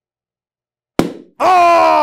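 A balloon bursts with a sharp pop.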